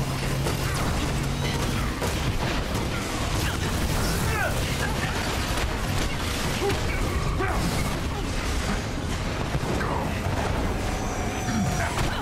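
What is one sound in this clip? Energy blasts fire with loud zaps.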